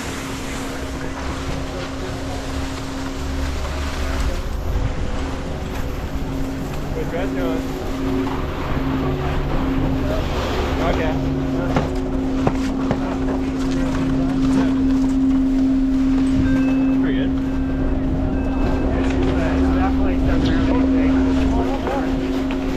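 A chairlift's machinery hums steadily nearby.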